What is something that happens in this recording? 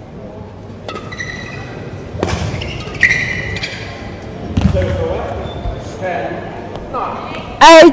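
Rackets strike a shuttlecock in a large echoing hall.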